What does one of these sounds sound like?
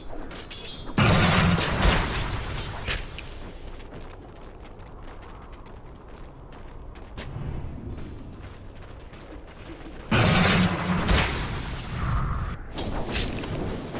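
Magic spells burst and whoosh loudly.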